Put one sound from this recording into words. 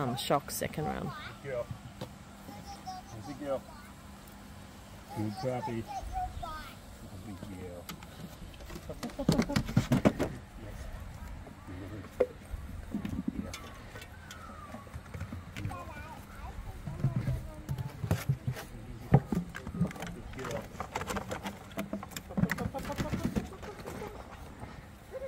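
A man speaks encouragingly to a dog nearby, outdoors.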